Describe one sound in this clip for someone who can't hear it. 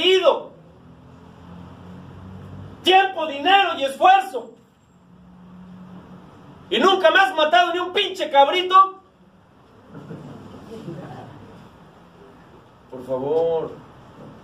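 A man speaks with animation into a microphone, pausing between phrases.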